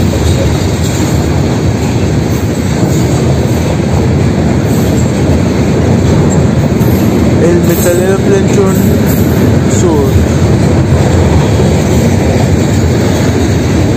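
Freight cars rumble and clatter past on the rails close by.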